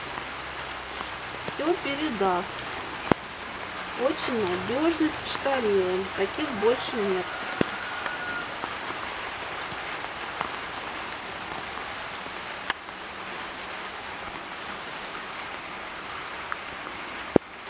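Paper letters rustle in a woman's hands.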